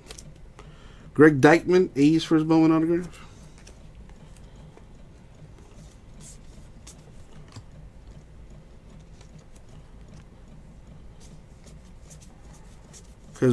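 Trading cards slide and rustle softly against each other in someone's hands.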